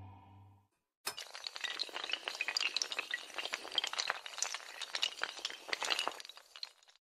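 Many tiles clatter rapidly as they topple over one another.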